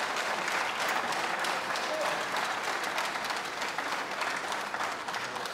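A large audience applauds steadily.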